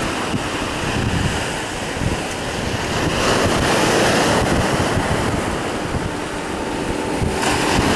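Wind blows hard into the microphone.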